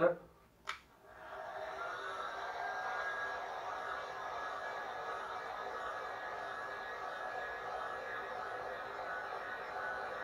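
A heat gun blows with a steady whooshing hum.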